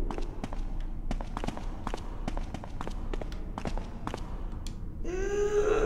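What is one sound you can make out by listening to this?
Footsteps tap down stone stairs in an echoing hall.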